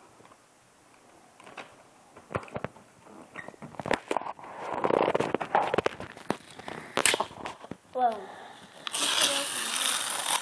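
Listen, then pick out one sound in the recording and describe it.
Wrapping paper crinkles and tears as a small child unwraps a present.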